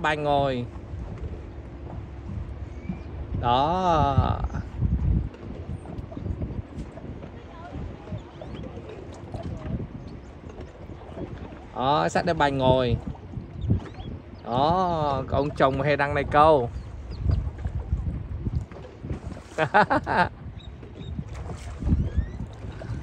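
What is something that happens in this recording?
Choppy water laps and splashes against rocks.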